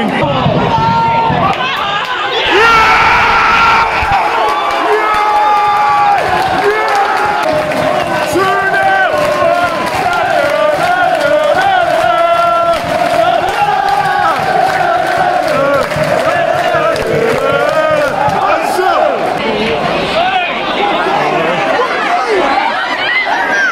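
A large crowd of fans sings and chants loudly in an open stadium.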